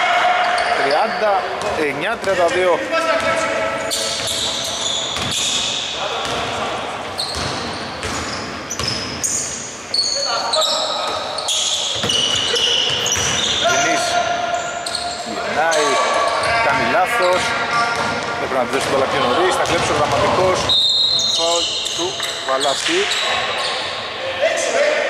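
Men shout to each other in a large echoing gym.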